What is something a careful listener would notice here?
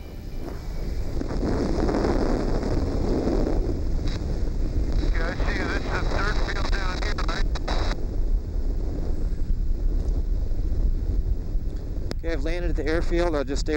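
Wind buffets loudly against a microphone outdoors.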